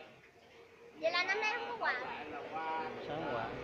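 Young girls talk and call out close by.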